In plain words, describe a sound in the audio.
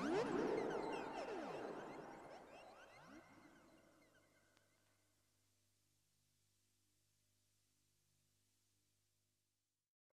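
A modular synthesizer plays sweeping, gliding electronic tones that slowly fade away.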